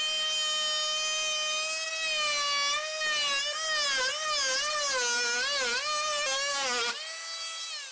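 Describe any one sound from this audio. An oscillating multi-tool whines loudly, its pitch wavering as it cuts.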